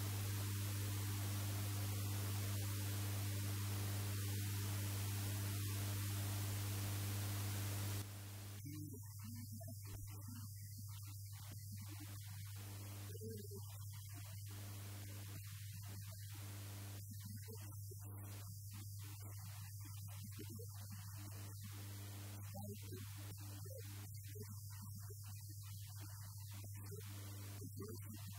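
A middle-aged man speaks calmly into a handheld microphone.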